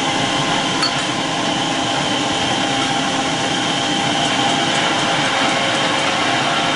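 An electric meat grinder whirs steadily with a loud motor hum.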